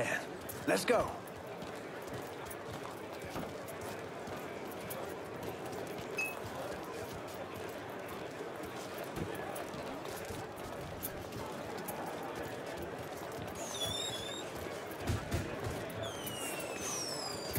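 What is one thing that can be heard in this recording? Footsteps shuffle slowly on pavement.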